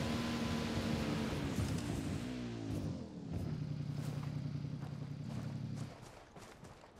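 A motorbike engine revs and rumbles.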